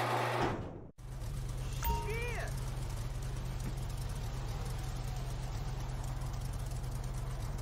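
A buggy engine idles with a steady low rumble.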